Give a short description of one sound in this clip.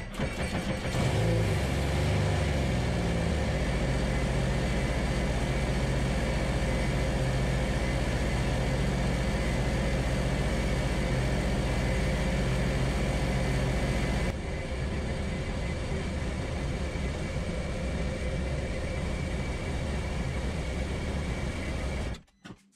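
An engine starts, revs briefly and settles into a steady, rumbling idle close by.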